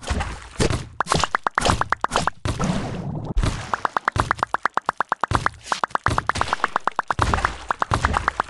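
A paint gun fires in rapid, regular bursts.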